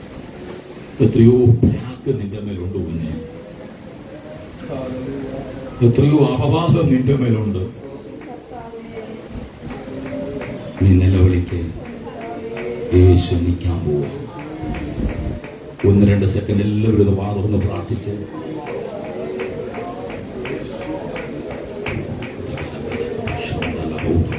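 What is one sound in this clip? A man speaks with animation through a microphone and loudspeakers in an echoing room.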